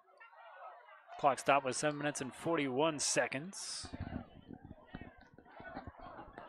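A crowd murmurs and cheers outdoors.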